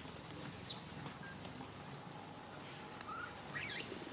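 Dry leaves rustle underfoot as a small monkey walks.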